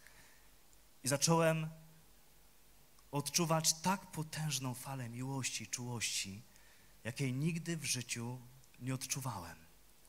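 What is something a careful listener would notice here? A man speaks calmly into a microphone through loudspeakers in a large hall.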